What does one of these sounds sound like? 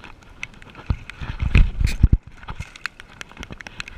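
Water splashes as a fish is lowered into it and released.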